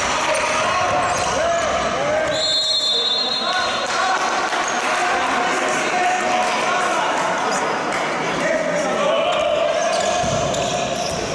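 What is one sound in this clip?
Young male players shout to each other in a large echoing hall.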